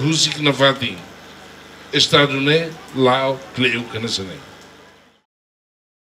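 An elderly man speaks slowly into a microphone, heard through loudspeakers.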